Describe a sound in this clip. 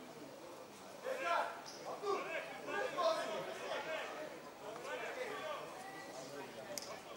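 A man shouts instructions nearby, outdoors.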